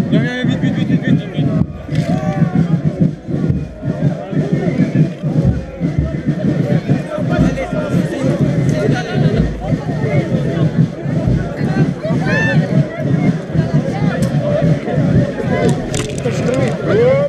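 A large crowd of men and women chatters and calls out loudly all around, outdoors.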